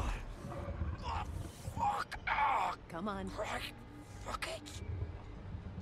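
A young woman speaks urgently nearby.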